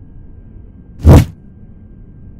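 A heavy blow lands with a sharp thud.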